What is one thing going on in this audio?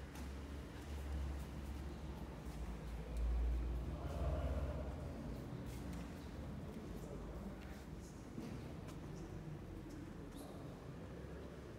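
Faint murmurs echo softly in a large, reverberant hall.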